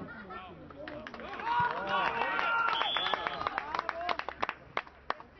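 A crowd cheers and shouts in the open air.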